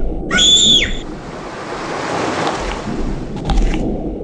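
Water splashes and sprays as a shark leaps out.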